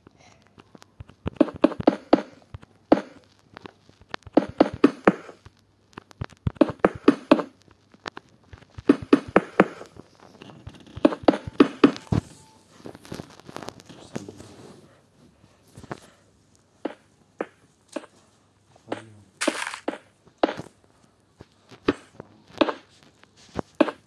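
Stone blocks thud softly as they are placed, one after another.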